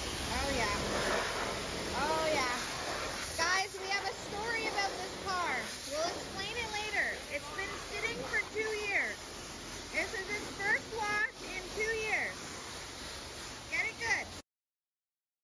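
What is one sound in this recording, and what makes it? A pressure washer sprays water hard against a car with a steady hiss.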